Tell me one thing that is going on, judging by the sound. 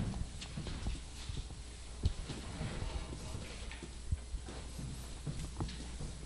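A board eraser rubs across a chalkboard.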